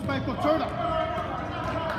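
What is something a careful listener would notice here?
A ball thumps off a foot.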